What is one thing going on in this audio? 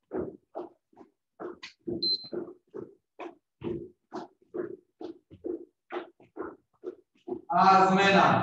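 A man counts out loud in quick, short rhythmic calls.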